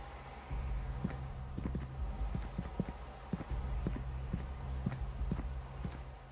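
Heavy footsteps thud on wooden boards at a running pace.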